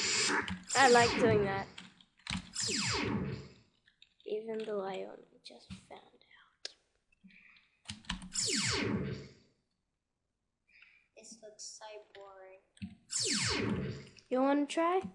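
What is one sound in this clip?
A game laser zaps with a quick falling pitch.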